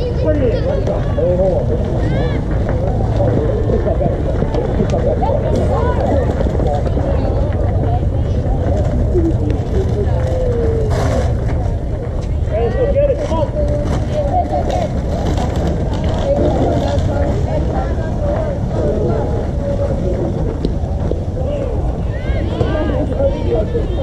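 Adults chatter close by outdoors.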